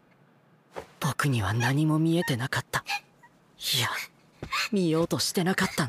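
A young man speaks softly and calmly close by.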